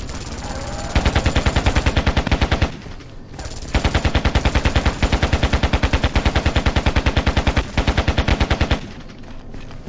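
A rifle fires rapid, loud bursts.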